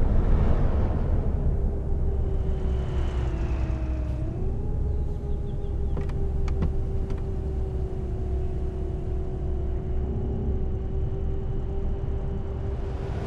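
Tyres rumble on the road surface.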